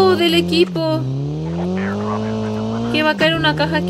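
A car engine revs and whines, rising and falling in pitch.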